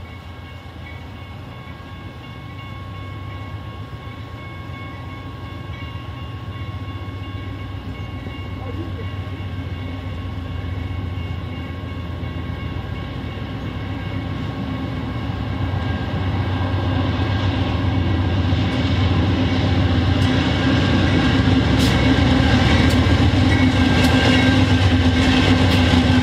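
Crossing bells ring steadily.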